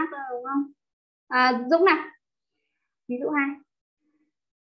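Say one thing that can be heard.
A young woman speaks calmly into a microphone, in short phrases.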